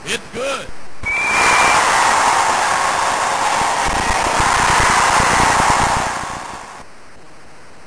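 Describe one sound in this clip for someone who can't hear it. A stadium crowd cheers loudly, then fades away.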